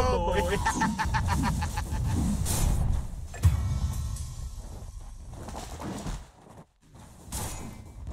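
Fantasy battle sound effects clash, zap and whoosh.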